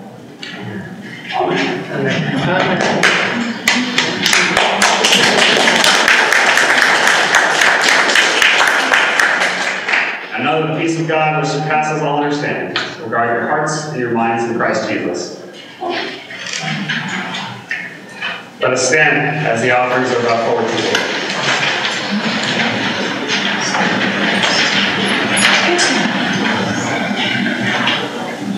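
A man speaks into a microphone in a large echoing hall.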